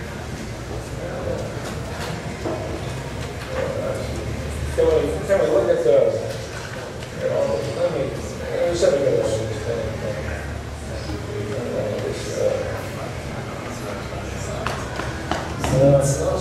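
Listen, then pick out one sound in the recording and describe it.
A crowd of people murmurs in the background.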